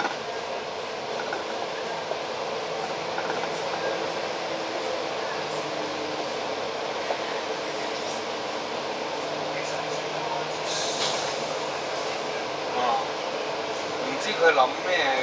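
City traffic rumbles steadily on a busy street.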